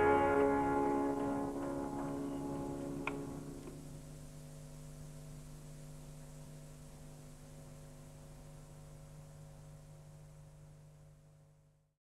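Sitars play a final chord that rings on and slowly fades away.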